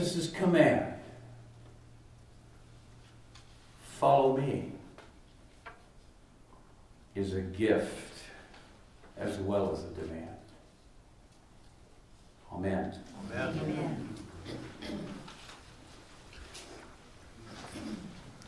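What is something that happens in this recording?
An elderly man speaks slowly and solemnly in short phrases, in a small echoing room.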